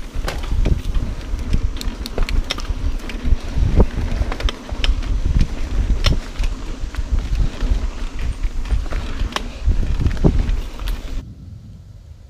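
Mountain bike tyres rattle and bump over a rough dirt trail.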